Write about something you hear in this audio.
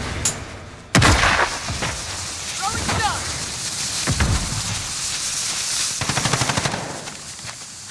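A smoke grenade hisses steadily.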